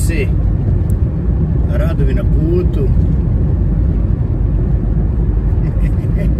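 Tyres and engine rumble low and steady inside a car cruising at highway speed.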